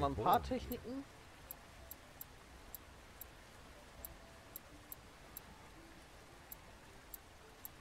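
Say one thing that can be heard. Soft, short ticks of a game menu sound again and again.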